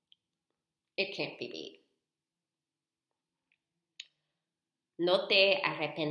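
A young woman speaks close to a microphone, with pauses.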